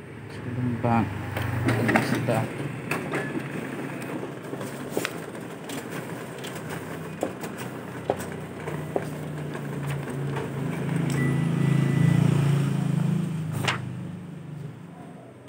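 A copying machine whirs and hums.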